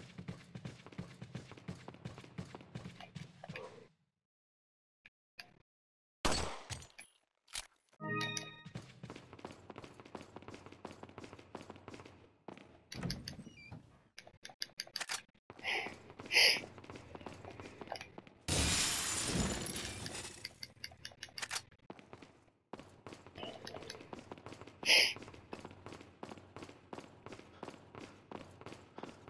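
Footsteps tap steadily on a hard stone floor in a large echoing hall.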